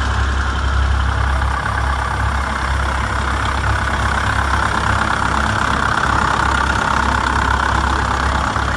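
A second old tractor engine putters loudly close by.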